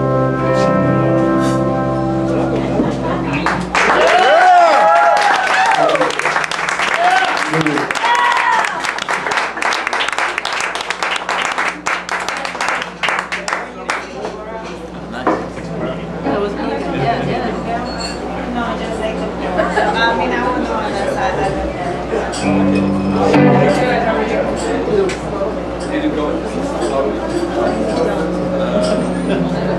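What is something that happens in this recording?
A live band plays loudly.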